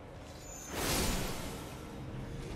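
A magic spell bursts with a loud shimmering whoosh.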